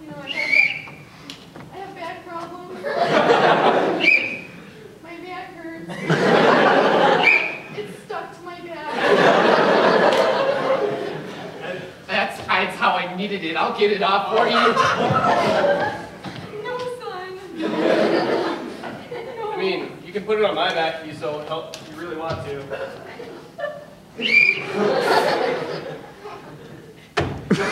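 A young woman speaks on a stage in a hall.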